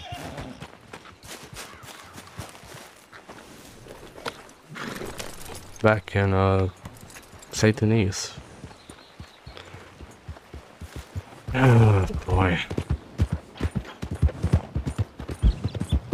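A horse's hooves clop on a dirt path.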